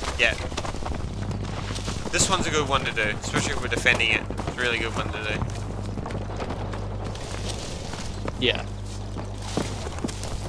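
Footsteps thud quickly on the ground.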